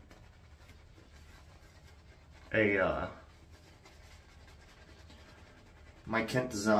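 A shaving brush swishes and scrubs against a lathered beard.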